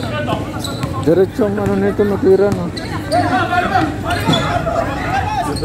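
A basketball bounces on hard ground.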